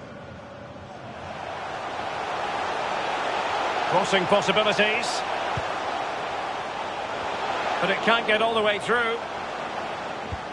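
A stadium crowd cheers and roars, swelling and then fading.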